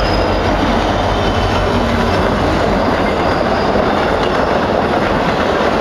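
Loaded coal hopper cars roll and clatter past on the rails.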